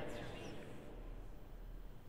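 An elderly woman speaks briefly and calmly into a microphone in a reverberant room.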